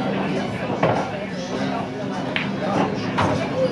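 A cue stick strikes a billiard ball.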